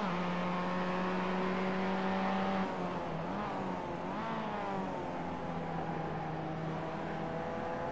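A race car engine drones steadily, its pitch rising and falling as it shifts and accelerates.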